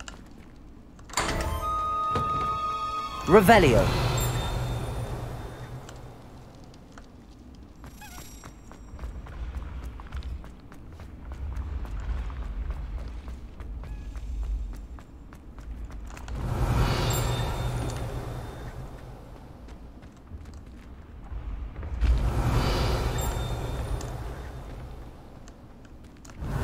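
Footsteps run quickly across a stone floor in a large echoing hall.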